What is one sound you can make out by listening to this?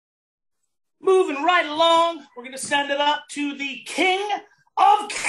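A middle-aged man speaks with animation into a close microphone, as over an online call.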